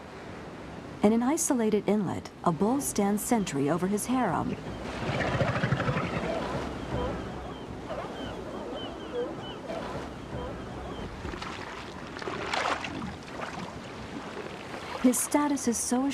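Elephant seals bellow and groan loudly.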